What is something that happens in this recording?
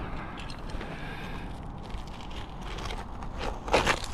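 A utility knife scrapes and cuts through a roofing shingle.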